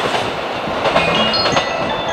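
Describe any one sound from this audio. Train brakes squeal in high tones.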